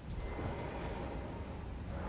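A blade whooshes through the air.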